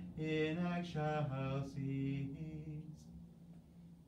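A middle-aged man chants in a steady sung voice through a microphone.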